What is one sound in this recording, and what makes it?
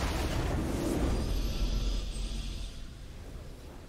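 A game victory chime rings out and fades.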